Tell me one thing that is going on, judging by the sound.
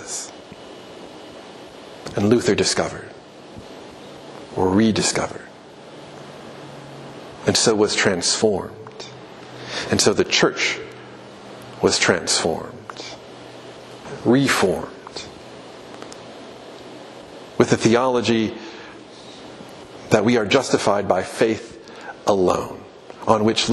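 A middle-aged man speaks into a microphone with measured pauses, in a room with some echo.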